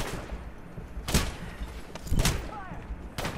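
Gunshots crack sharply a few times.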